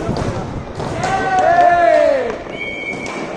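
A man shouts loudly from across the rink.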